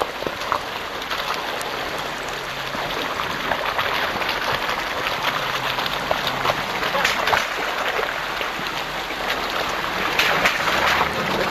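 Tyres splash and crunch through mud and water.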